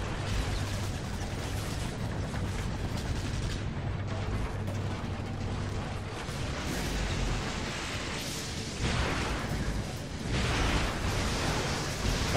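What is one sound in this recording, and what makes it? Gunfire and energy blasts crackle loudly.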